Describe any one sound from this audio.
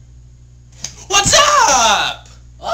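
A teenage boy yells loudly close by.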